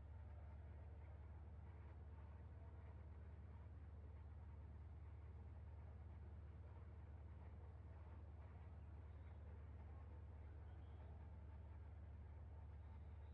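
A racing car engine drones steadily.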